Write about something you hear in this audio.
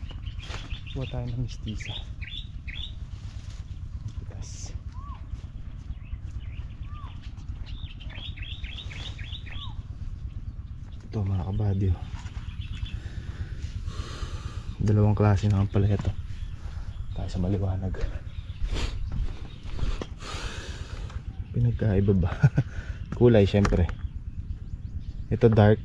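A young man talks calmly close by, in short bursts.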